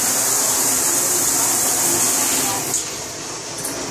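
A shower knob clicks as it is turned.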